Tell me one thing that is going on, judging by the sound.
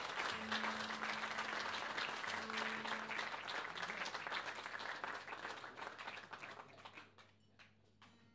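An audience applauds loudly, then the applause dies away.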